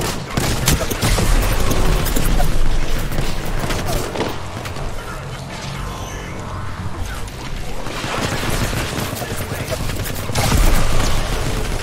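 A fireball bursts with a whoosh.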